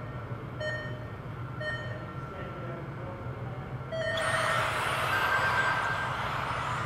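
Small electric motors of radio-controlled cars whine as the cars race by.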